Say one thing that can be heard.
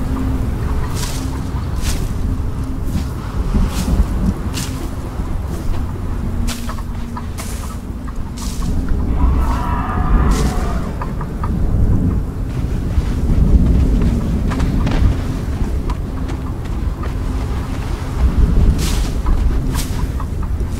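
Dry brush rustles and snaps in quick, sharp strikes as it is chopped.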